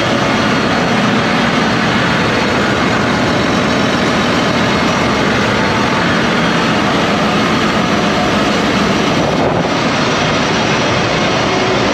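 A large diesel engine roars loudly and steadily.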